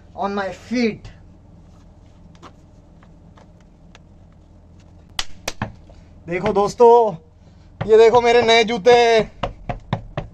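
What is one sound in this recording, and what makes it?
A man speaks close by, in short bursts.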